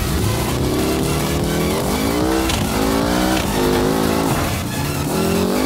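A racing car engine revs hard, rising and falling as the gears shift.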